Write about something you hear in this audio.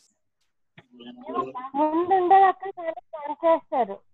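A young boy talks, heard through an online call.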